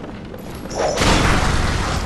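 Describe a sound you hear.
A gun fires with a loud bang.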